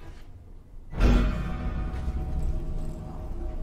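An elevator hums and rumbles as it moves.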